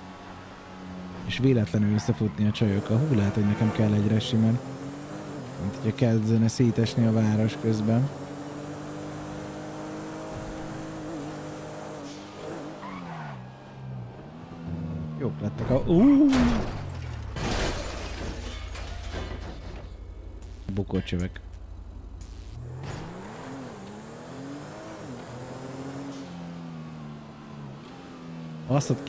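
A car engine roars and revs as the car speeds up and slows down.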